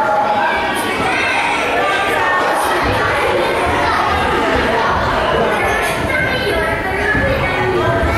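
A woman speaks with animation to a group.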